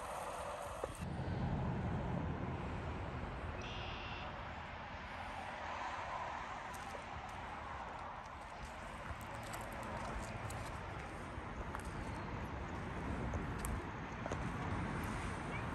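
Wind blows across a microphone outdoors, rumbling low.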